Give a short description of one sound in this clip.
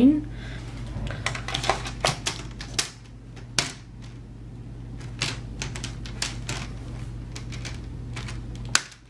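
Plastic clips snap and click as a laptop bezel is pressed into place.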